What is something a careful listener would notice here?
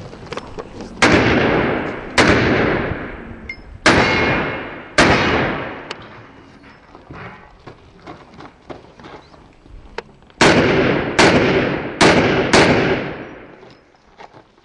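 A pistol fires loud shots that ring out outdoors.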